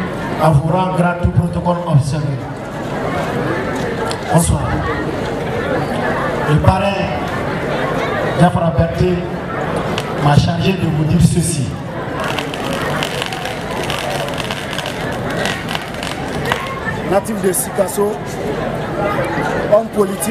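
A man speaks formally into a microphone through loudspeakers outdoors.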